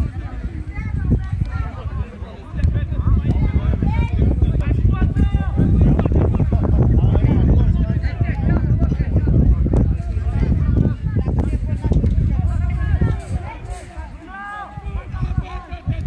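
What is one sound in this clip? Footballers shout to each other in the distance.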